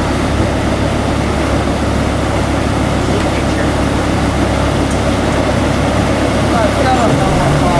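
Water rushes and churns steadily through lock gates.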